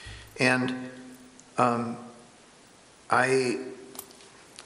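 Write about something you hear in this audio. A man speaks briefly into a microphone, in short phrases with pauses.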